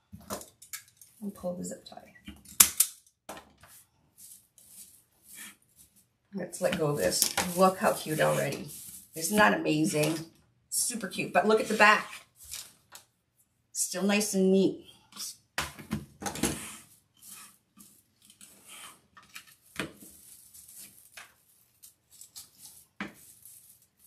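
Mesh ribbon rustles and crinkles as hands shape it.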